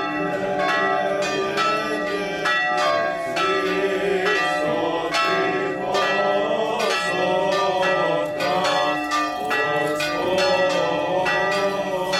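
A group of men chant together outdoors.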